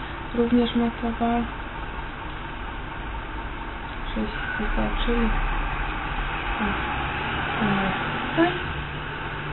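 A young woman speaks softly and calmly close by.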